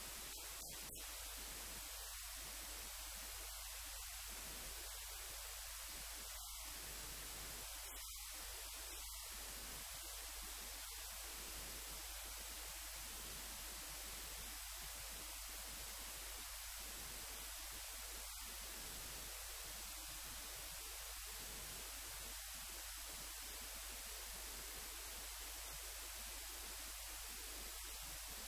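An elderly man speaks calmly into a microphone, heard over loudspeakers in a large hall.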